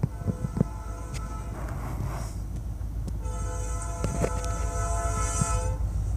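A diesel locomotive engine rumbles low as the train approaches.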